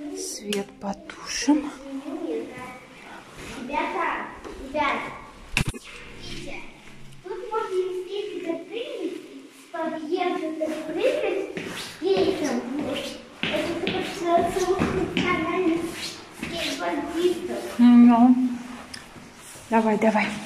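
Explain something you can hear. A young child talks in an echoing space.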